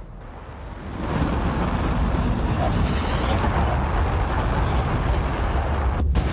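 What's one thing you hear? A spacecraft's thrusters roar as it comes in to land.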